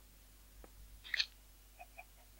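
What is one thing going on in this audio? A sharp click of a stone block breaking.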